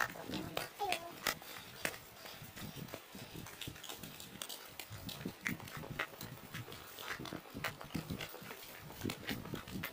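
Wind rushes across the microphone outdoors.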